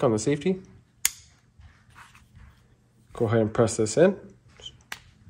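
Metal parts of a pistol click as it is handled.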